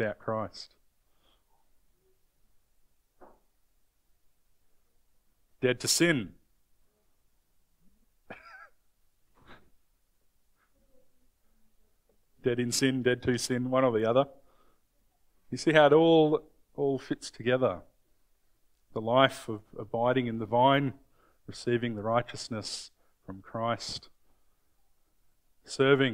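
A young man speaks calmly, pausing often.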